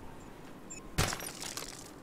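A gadget beeps and flashes with a bright burst.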